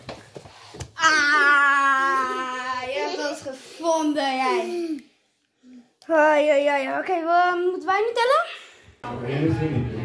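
A young boy laughs and shouts with excitement close by.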